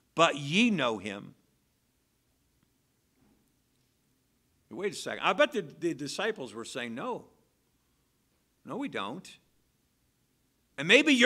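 A middle-aged man speaks earnestly into a microphone, with pauses between phrases.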